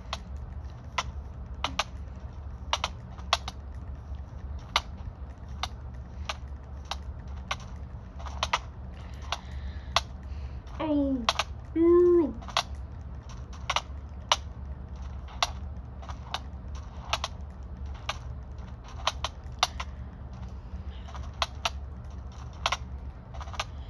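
Sharp game hit sounds click often from a small speaker.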